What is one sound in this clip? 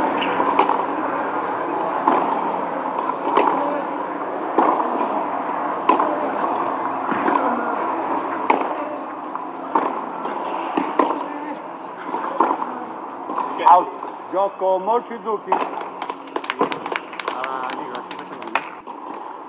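A tennis ball is struck back and forth with sharp pops of the racket.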